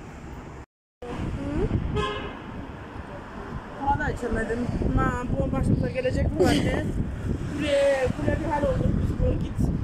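A middle-aged woman speaks close by, with feeling.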